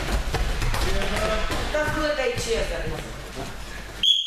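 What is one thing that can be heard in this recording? Children shout and call out in an echoing hall.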